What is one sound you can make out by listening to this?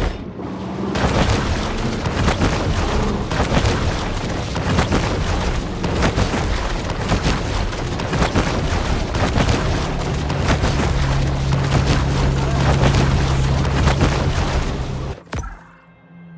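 Water splashes and churns loudly as a shark swims along the surface.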